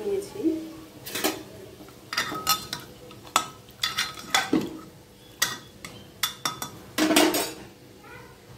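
A spoon scrapes and knocks against a metal pot.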